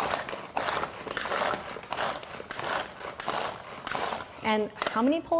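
A hand-pulled food chopper whirs in quick repeated bursts.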